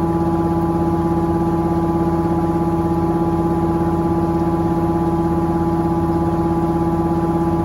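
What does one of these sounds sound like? A washing machine drum spins with a steady, droning hum.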